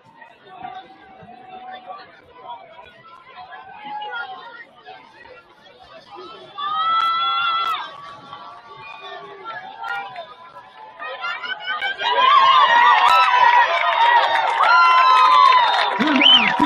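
A crowd chatters and murmurs outdoors.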